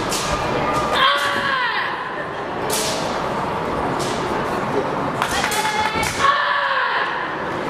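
A young woman shouts sharp karate cries.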